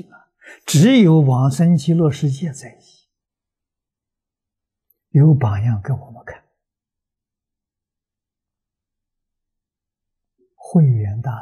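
An elderly man speaks calmly into a close microphone, in short phrases with long pauses.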